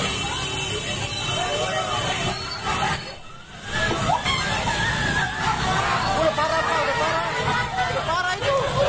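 A crowd of men and women talk and shout excitedly outdoors.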